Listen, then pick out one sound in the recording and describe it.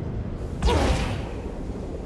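A loud energy blast bursts and rumbles.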